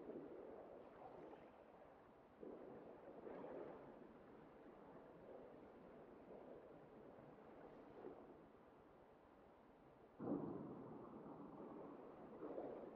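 Water churns with a muffled, dull rumble, as if heard underwater.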